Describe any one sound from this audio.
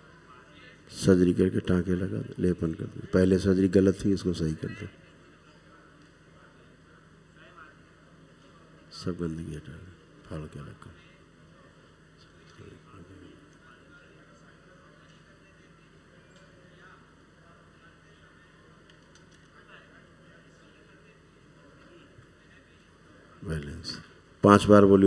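A man speaks slowly and calmly into a microphone, in bursts with long pauses.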